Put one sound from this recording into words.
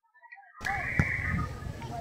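A volleyball thumps as a player hits it.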